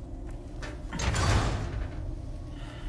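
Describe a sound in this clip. A metal gate latch rattles and clanks.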